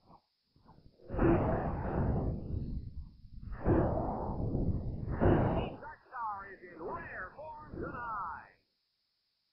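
Laser guns fire and blasts explode in quick bursts.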